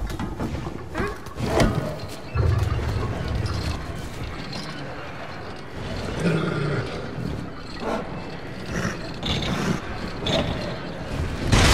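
A heavy chain creaks and rattles as a boy climbs it.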